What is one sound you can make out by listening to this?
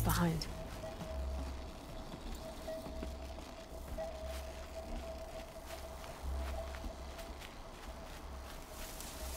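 Footsteps crunch through grass and snow.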